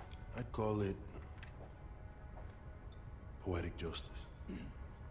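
A man speaks calmly and briefly, close by.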